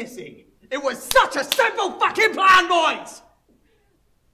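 A young man shouts angrily close by.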